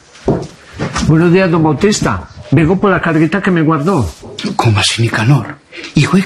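A man at a counter speaks with animation at close range.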